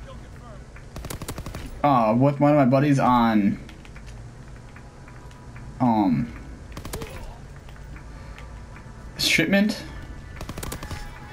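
A gun fires in short bursts.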